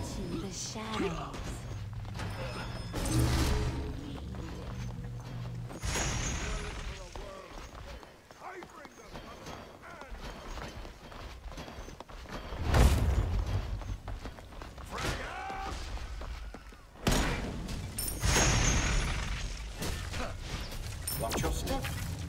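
Magic blasts and weapon hits crash in short bursts.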